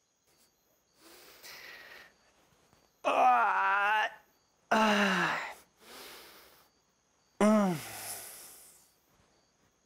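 A young man groans and cries out loudly nearby.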